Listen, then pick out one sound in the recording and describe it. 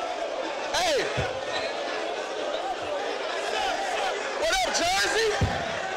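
A young man raps loudly and forcefully.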